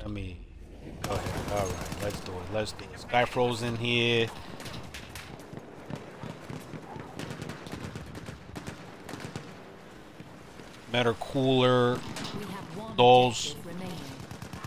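Gunfire crackles in the distance.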